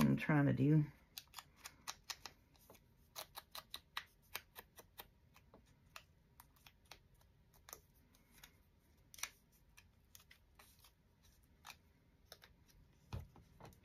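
An ink applicator taps and dabs quickly against a piece of paper.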